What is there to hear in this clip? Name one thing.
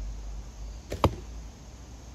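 A bowstring snaps sharply as an arrow is released.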